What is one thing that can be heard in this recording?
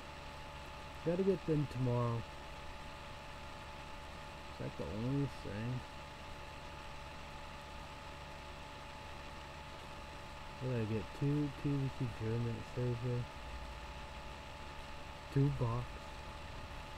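A young man talks calmly and close by, in short bursts.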